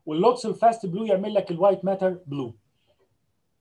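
A middle-aged man lectures calmly over an online call.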